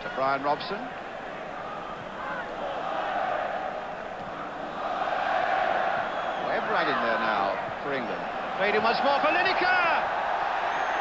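A large stadium crowd roars and swells in excitement.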